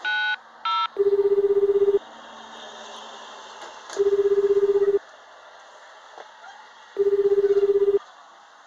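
A telephone earpiece plays a low ringing tone in short bursts.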